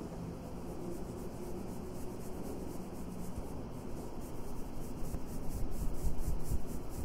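A makeup brush softly sweeps across skin in quick strokes.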